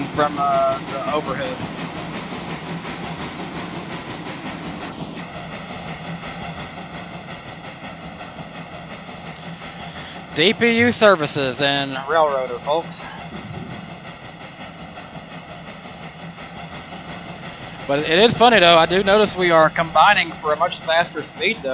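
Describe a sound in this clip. A steam locomotive's whistle blows loudly, rising and falling.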